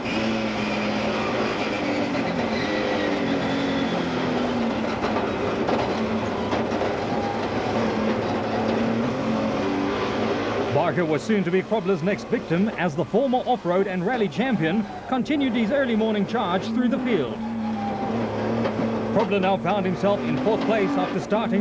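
A rally car engine roars and revs hard close by.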